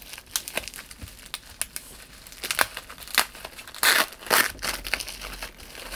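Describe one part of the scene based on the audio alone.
A blade slits through plastic wrap.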